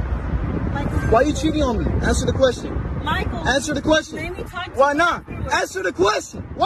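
A young woman sobs and wails loudly close by.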